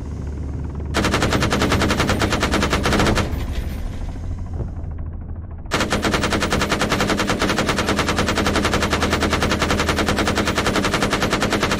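A heavy machine gun fires long, rapid bursts.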